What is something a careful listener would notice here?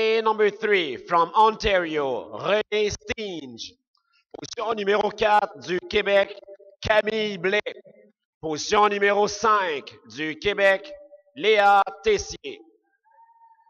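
A man speaks clearly through a loudspeaker in a large hall.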